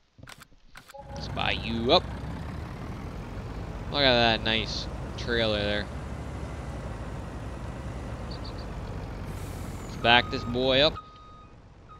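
A truck engine rumbles steadily and revs.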